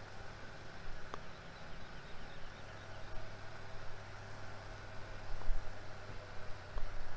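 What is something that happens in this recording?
A tractor engine hums steadily as it pulls a trailer.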